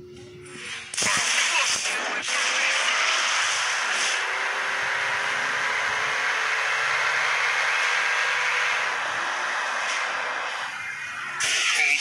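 A vehicle engine roars with a steady rushing hiss.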